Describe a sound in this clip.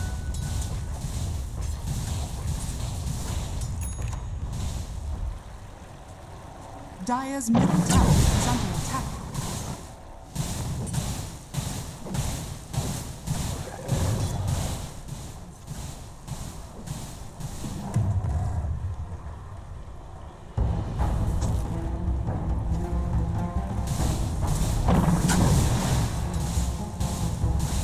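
Magic spells whoosh and blast in quick bursts.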